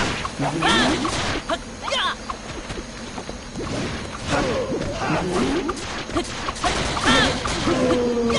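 Weapon blows thud and clash in a fight.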